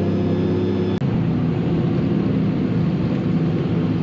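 Motorcycles rumble past close by.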